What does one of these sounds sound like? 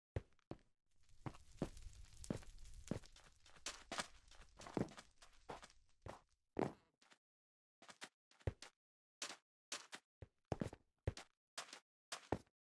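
Footsteps tap quickly on hard blocks.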